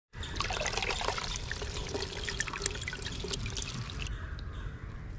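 Small fish splash and wriggle in water as hands scoop them.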